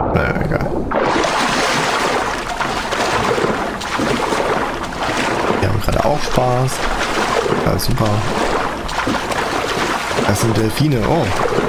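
Water splashes and churns steadily as a swimmer moves through waves.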